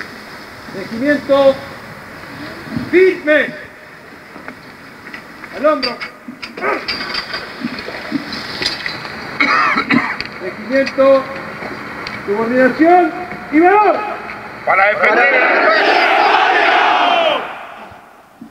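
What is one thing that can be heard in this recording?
A man shouts loud military commands outdoors.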